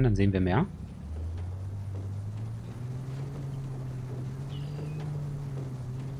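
A jeep engine hums steadily and revs up a little.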